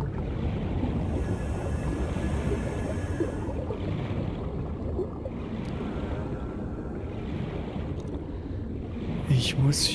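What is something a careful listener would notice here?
A deep, steady underwater rumble fills the surroundings.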